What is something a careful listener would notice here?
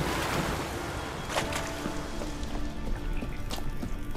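Footsteps crunch on gravel.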